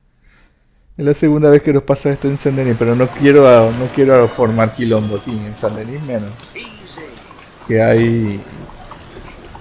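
A man talks with animation outdoors.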